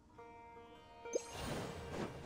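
A crackling electric blast bursts with a loud whoosh.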